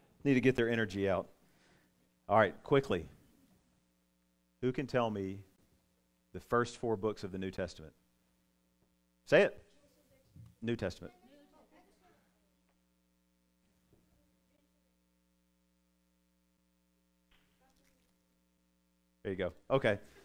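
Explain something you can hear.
A man speaks calmly into a microphone, in short bursts with long pauses.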